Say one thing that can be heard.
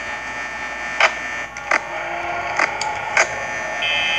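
Bursts of electronic static crackle several times.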